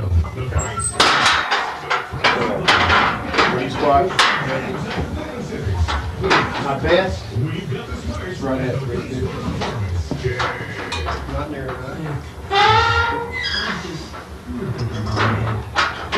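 Metal weight plates clank on a barbell.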